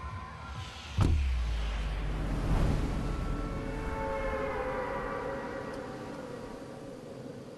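Wind rushes loudly, then slowly fades.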